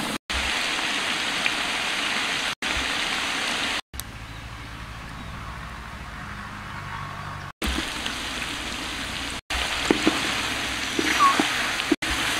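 Meat sizzles and bubbles in a hot pan.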